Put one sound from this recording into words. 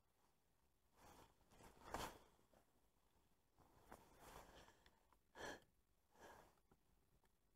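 Clothing rustles close by.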